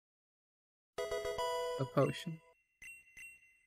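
A short, bright electronic jingle plays.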